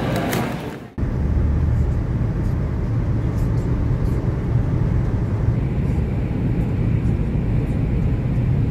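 A car drives steadily along a highway, its tyres rumbling low on the road.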